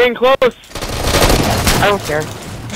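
An explosion booms nearby.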